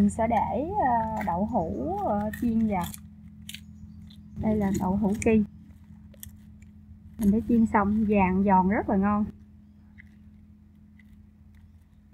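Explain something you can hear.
Scissors snip through fried tofu.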